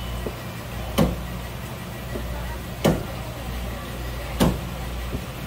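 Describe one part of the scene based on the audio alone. A knife blade knocks against a wooden cutting board.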